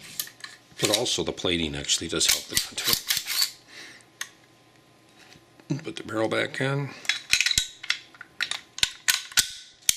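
Metal parts of a pistol click and scrape as they are handled.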